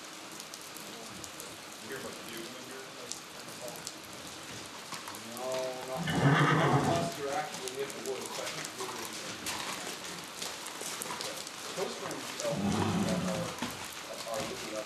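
Hooves clop on gravel as a horse walks.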